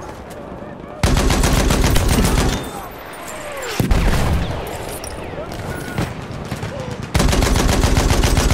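A machine gun fires rapid, loud bursts.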